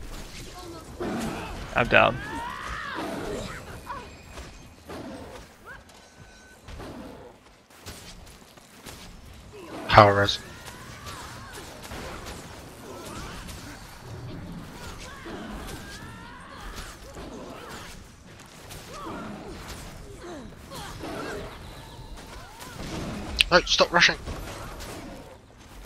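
Magic blasts and weapon hits crash and ring out in a fight against a large monster.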